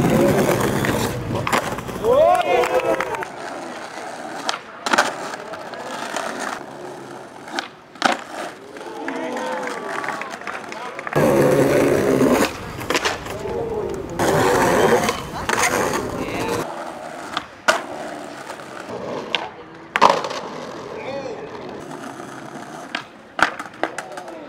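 Skateboard wheels roll and rumble over paving stones.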